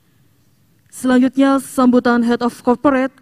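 A woman reads out into a microphone through a loudspeaker outdoors.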